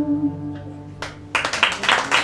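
An acoustic guitar rings out a final chord.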